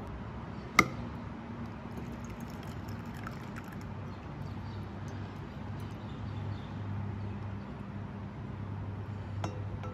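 Liquid trickles through a strainer into a jug.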